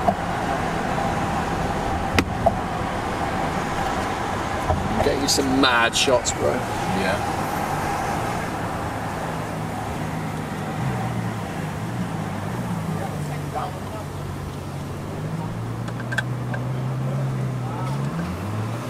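A sports car engine idles with a low, deep rumble nearby.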